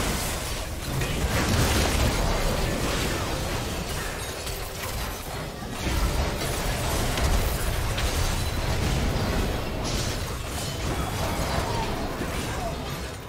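Fighting sounds and magic blasts from a game clash and burst continuously.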